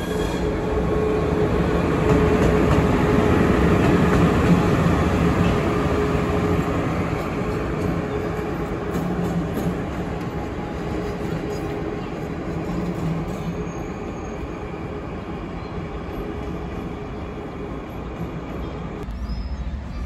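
An electric locomotive rumbles and hums past close by, then fades into the distance.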